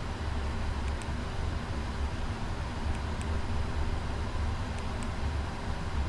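Keypad buttons click softly a few times.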